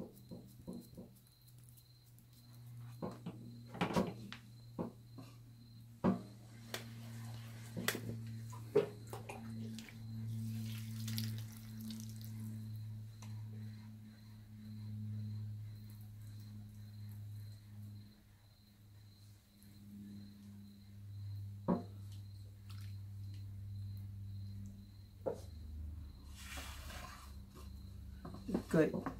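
Wet hands squelch softly against spinning clay.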